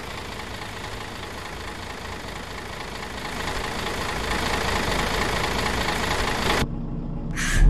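A bus drives past with a rising rush of engine and road noise.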